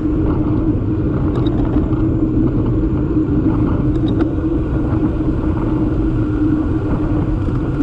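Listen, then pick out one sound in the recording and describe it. Bicycle tyres hum on smooth asphalt.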